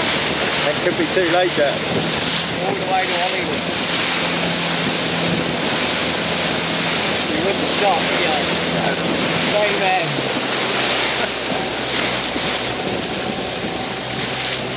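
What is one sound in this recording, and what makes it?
Water splashes and rushes against sailboat hulls.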